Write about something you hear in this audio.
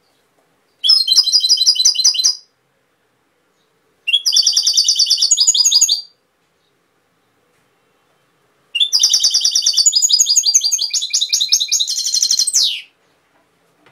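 A small bird sings close by in bursts of fast, bright, trilling phrases.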